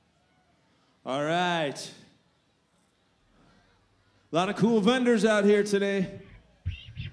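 A young man sings loudly into a microphone through loudspeakers outdoors.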